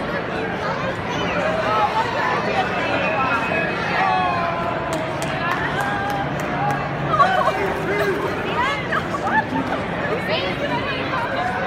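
Excited voices of men and women call out and cheer nearby.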